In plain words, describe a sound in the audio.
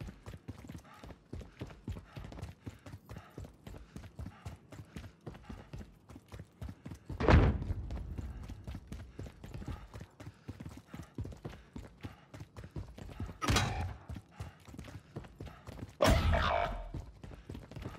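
Footsteps thud quickly down hard stairs.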